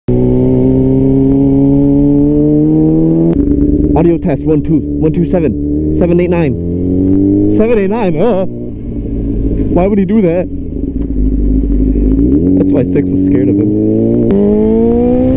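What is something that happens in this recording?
A motorcycle engine hums and revs as the bike rides along.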